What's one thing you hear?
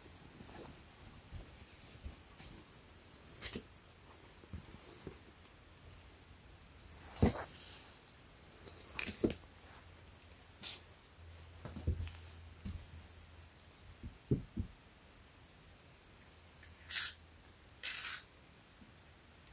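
Fabric rustles as a shirt is handled and smoothed flat.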